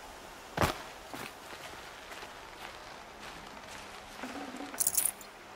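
Footsteps patter on a hard floor.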